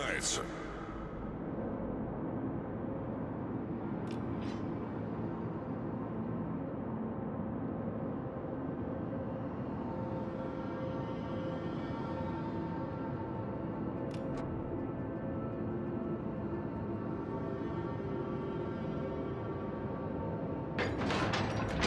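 A large ship's engine hums steadily.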